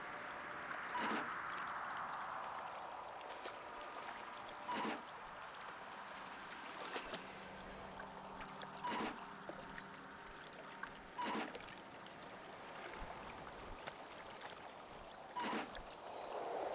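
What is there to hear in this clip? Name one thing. A short electronic chime sounds again and again.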